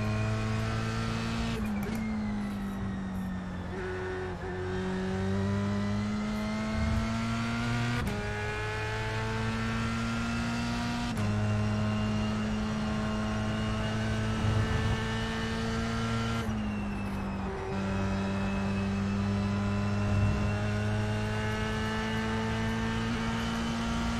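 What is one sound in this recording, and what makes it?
A racing car engine roars at high revs, dropping in pitch at each gear change and climbing again.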